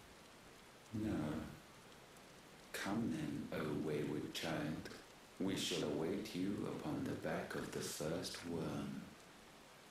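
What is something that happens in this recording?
A man speaks slowly in a deep, solemn voice from a distance.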